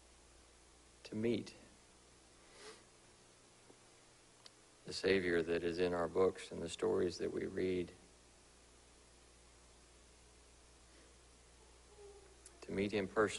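A man speaks calmly into a microphone, with long pauses between phrases.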